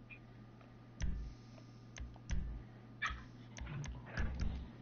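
Short soft menu clicks sound several times.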